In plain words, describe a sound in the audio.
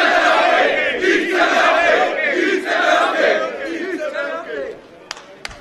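A crowd chants together outdoors.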